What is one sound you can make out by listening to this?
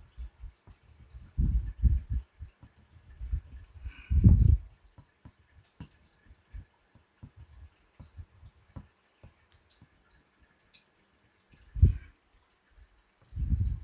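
A paintbrush dabs and taps softly against a board.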